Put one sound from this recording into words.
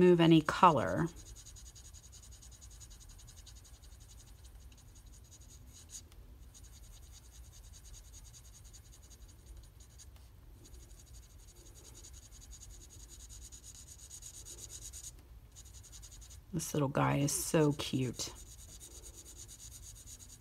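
A marker pen rubs softly on paper.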